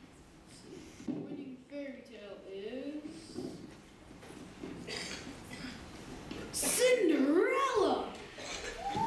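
A boy speaks through a microphone into a hall.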